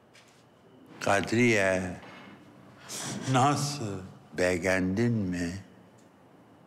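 An elderly man speaks in a low, firm voice nearby.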